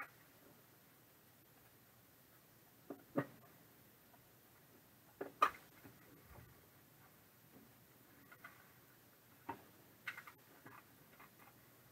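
A plastic case clicks and clatters in handling.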